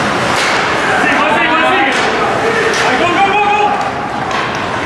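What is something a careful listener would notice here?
Young men shout to each other in a large echoing rink.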